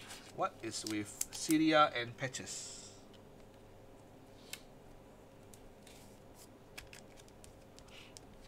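A plastic card sleeve rustles and crinkles as fingers handle it.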